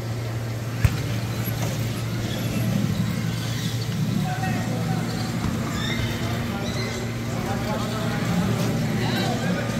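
Electric wheelchair motors whir across the floor.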